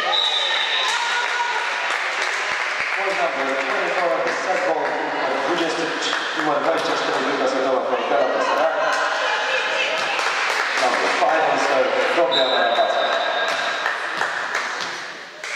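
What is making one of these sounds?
Young women call out and chat together in a large echoing hall.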